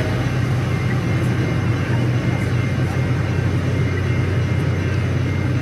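A train engine rumbles steadily as the train pulls away.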